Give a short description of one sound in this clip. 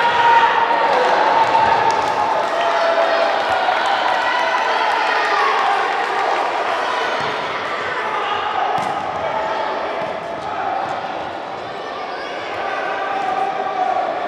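A crowd of spectators chatters and shouts in a large echoing hall.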